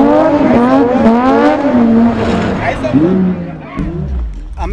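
Car tyres squeal as they spin on pavement.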